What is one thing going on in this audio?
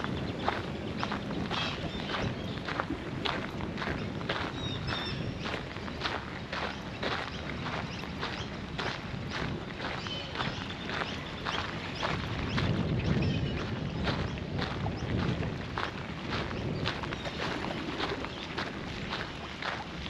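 Wind blows across the microphone outdoors.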